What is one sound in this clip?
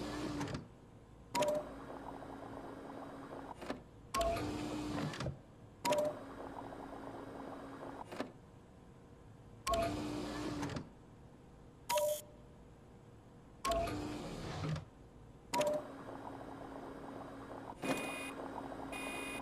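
A machine pumps liquid between tubes in short gurgling bursts.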